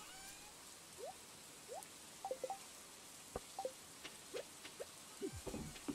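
Short electronic blips and pops from a video game sound in quick bursts.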